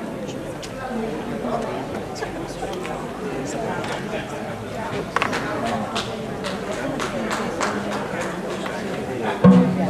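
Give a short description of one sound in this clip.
An electric guitar plays a few notes.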